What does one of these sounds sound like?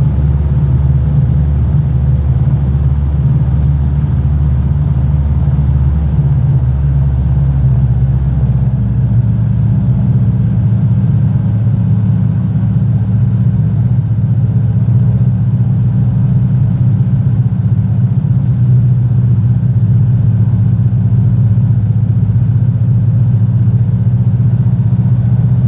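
A small propeller plane's engine drones steadily and loudly from inside the cockpit.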